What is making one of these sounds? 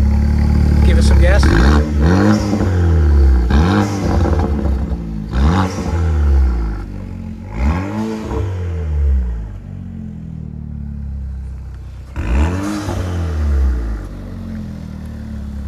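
A loud engine idles with a deep, rumbling exhaust.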